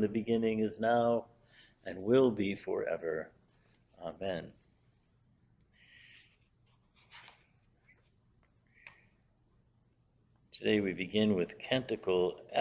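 An older man speaks calmly and close, with pauses, as if reading out.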